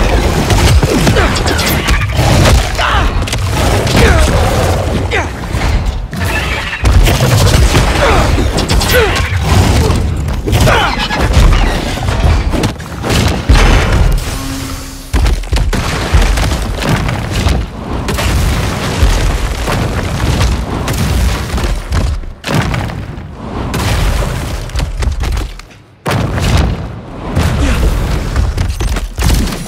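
Heavy blows and impacts thud during a fight.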